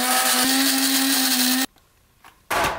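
A coffee grinder whirs loudly, then stops abruptly.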